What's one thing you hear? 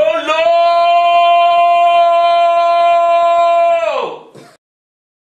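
A man blows a loud, steady whistle through his hands.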